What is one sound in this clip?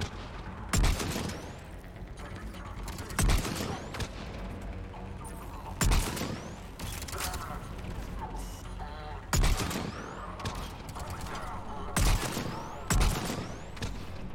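Loud rifle shots crack and echo, one at a time.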